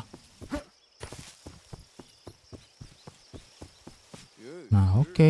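Footsteps swish steadily through grass.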